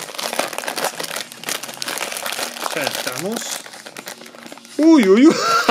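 A foil packet crinkles and rustles as it is handled.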